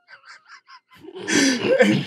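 Men laugh loudly.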